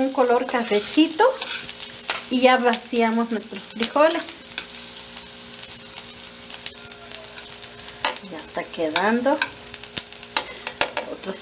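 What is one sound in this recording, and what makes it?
A metal spatula scrapes and clinks against an iron wok.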